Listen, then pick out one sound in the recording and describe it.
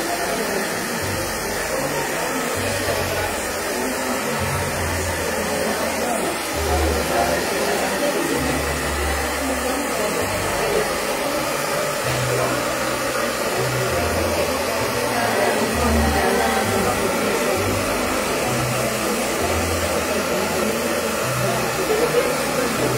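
A hair dryer blows with a steady roar.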